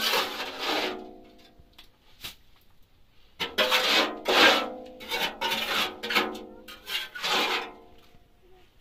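A trowel scrapes mortar in a metal wheelbarrow with a harsh, ringing screech.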